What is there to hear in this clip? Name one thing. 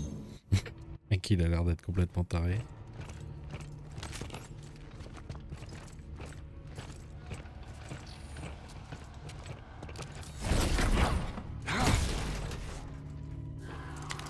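Heavy boots thud on a metal floor.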